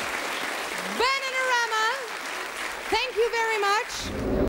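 Women sing a melody together through loudspeakers.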